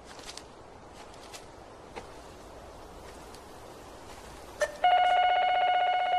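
Footsteps crunch on dry leaves.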